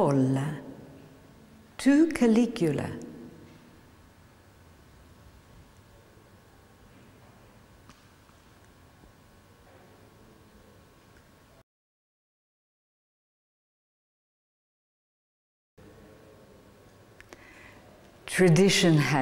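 A middle-aged woman speaks calmly and clearly into a microphone.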